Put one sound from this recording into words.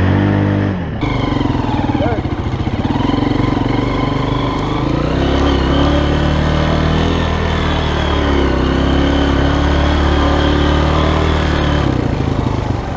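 A dirt bike engine revs loudly and rises and falls in pitch close by.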